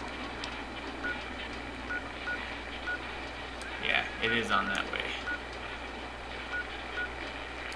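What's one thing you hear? Short electronic beeps sound now and then.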